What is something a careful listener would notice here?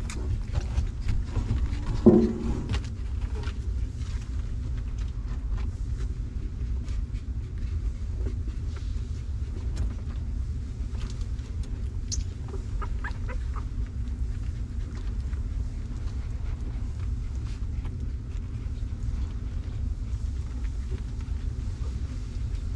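Puppies shuffle and rustle on a blanket.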